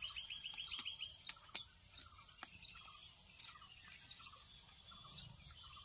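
A parrot pecks and crunches at a gourd.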